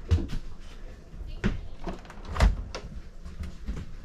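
A refrigerator door opens with a soft thud.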